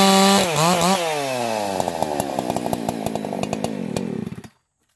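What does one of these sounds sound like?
A chainsaw engine slows and idles with a rattling putter.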